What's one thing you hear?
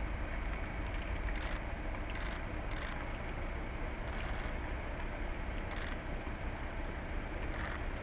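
Footsteps tread on a pavement outdoors.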